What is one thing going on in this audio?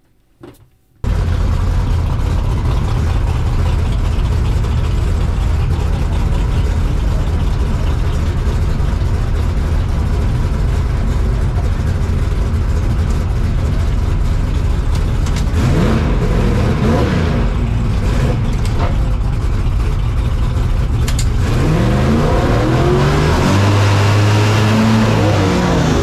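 A race car engine idles loudly with a rough rumble inside the cabin.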